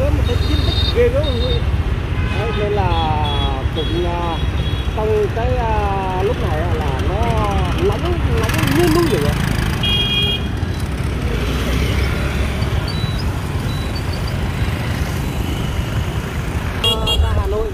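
Traffic rumbles steadily outdoors.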